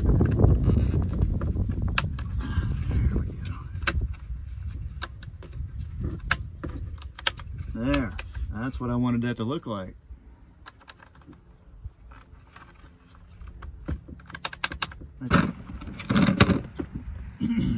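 Plastic parts click and snap together.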